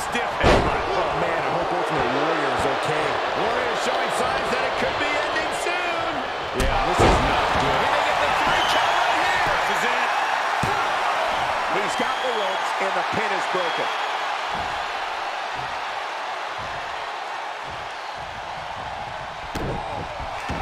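Bodies thud heavily on a wrestling ring mat.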